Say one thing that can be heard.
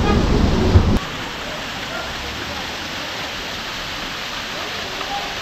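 A waterfall splashes steadily down rocks outdoors.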